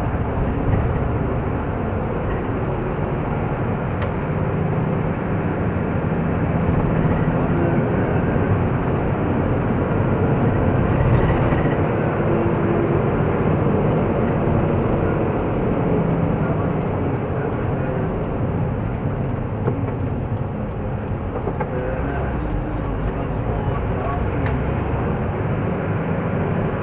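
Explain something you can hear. Tyres roll on the road with a constant rumble.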